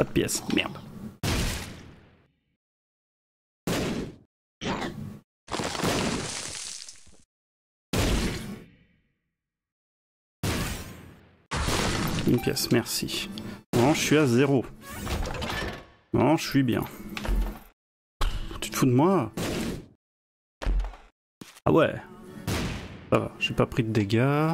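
Video game shots pop and splat in quick bursts.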